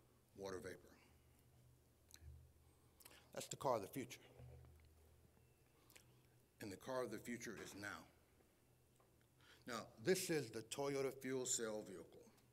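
A man speaks calmly into a microphone, with short pauses.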